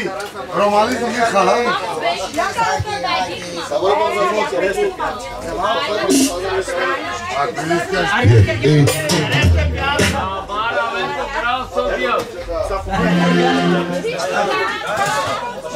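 A band plays music through loudspeakers.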